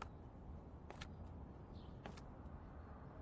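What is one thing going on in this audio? Boots step heavily on a hard floor.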